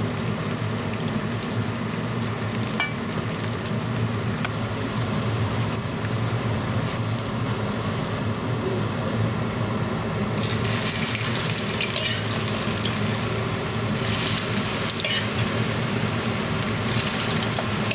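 A metal spatula scrapes and clinks against a pan.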